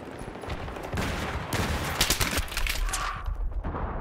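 Rapid gunshots crack loudly in bursts.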